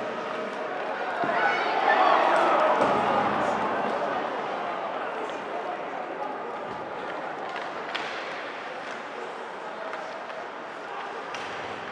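A puck clacks against hockey sticks.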